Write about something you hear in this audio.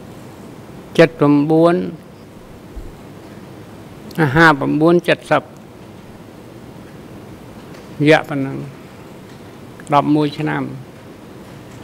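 An elderly man speaks slowly in short phrases into a microphone.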